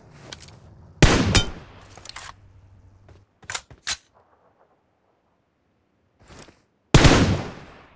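A rifle fires loud single shots that echo briefly.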